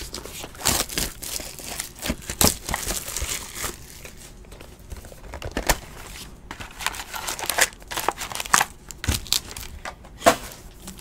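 Plastic card wrappers crinkle and rustle in hands.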